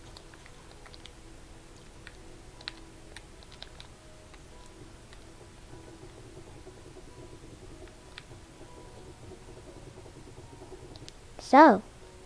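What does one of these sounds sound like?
Blocks are placed with short, soft clicks.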